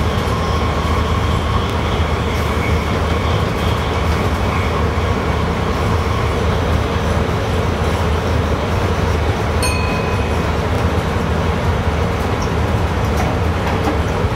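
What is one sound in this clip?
Wheels clatter rhythmically over rail joints.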